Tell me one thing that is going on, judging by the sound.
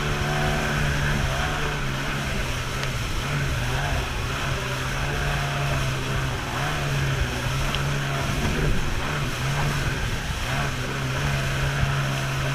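A jet ski engine drones steadily at speed.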